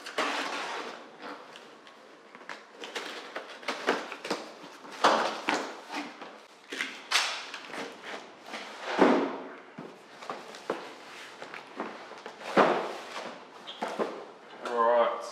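Tape rips and cardboard rustles as a box is opened.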